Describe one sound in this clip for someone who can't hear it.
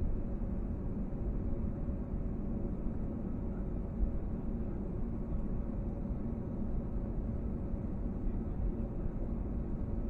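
A jet engine roars steadily as an airliner taxis.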